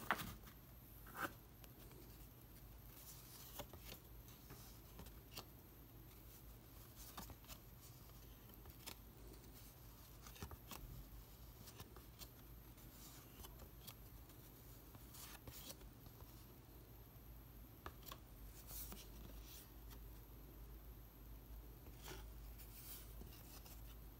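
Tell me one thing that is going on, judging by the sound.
Trading cards flick and slide against each other as hands shuffle through a stack.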